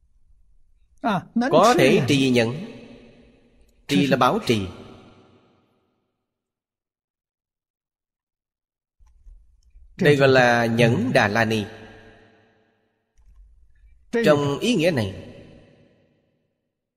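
An elderly man speaks calmly and slowly into a close microphone, in short phrases with pauses.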